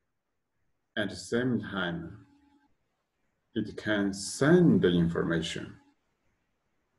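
A man speaks calmly and closely into a microphone, in short phrases.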